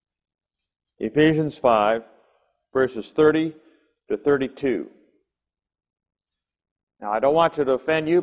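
An elderly man reads aloud calmly, close to a microphone.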